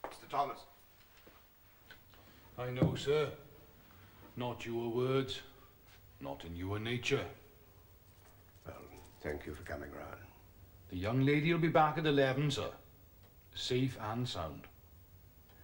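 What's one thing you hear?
A middle-aged man answers in a firm voice nearby.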